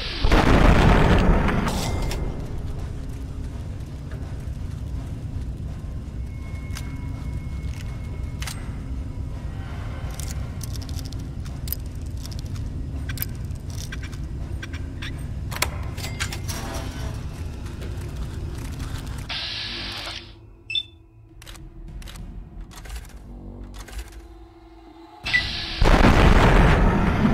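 A gun fires with a loud blast.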